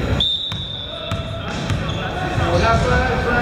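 Young men call out loudly to each other across the court.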